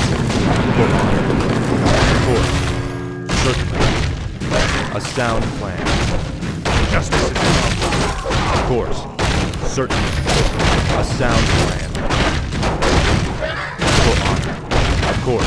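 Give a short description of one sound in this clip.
Weapons clash and spells crackle in a fight.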